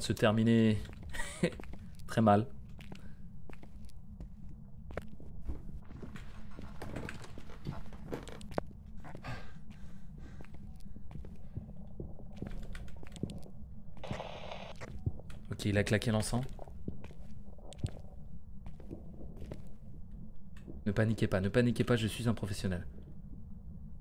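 A man talks into a close microphone with animation.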